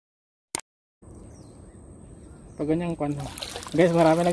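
Water sloshes softly around a man wading.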